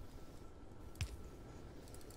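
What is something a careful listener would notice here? A menu opens with a short click.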